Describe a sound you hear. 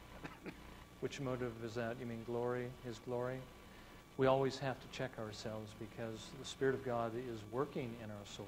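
A middle-aged man speaks with animation through a clip-on microphone.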